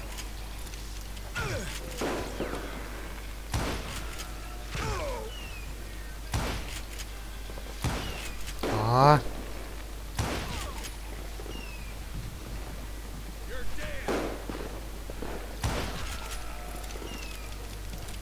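A rifle's lever clacks as it is worked.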